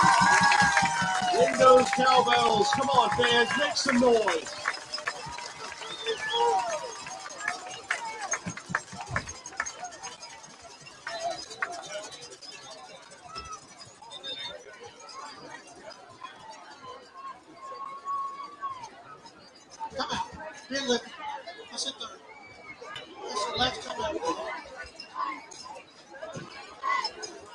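A crowd cheers and shouts outdoors, loudest at first, then quieter.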